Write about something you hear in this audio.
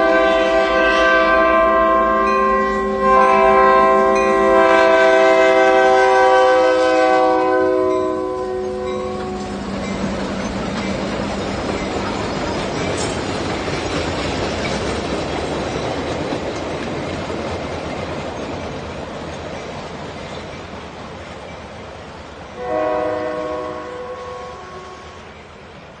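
A passing train rumbles and clatters over the rails.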